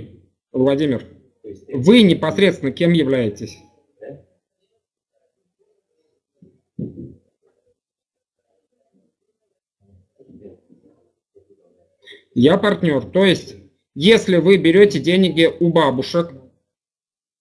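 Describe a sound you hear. A middle-aged man speaks calmly through a headset microphone over an online call, with pauses.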